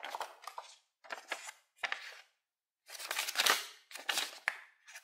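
A paper sheet rustles as it is unfolded.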